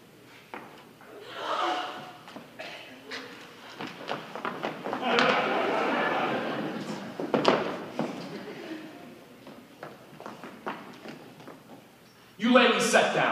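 A man speaks on stage in a large hall.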